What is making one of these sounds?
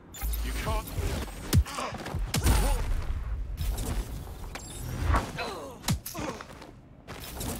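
Heavy blows and thuds land in a scuffle.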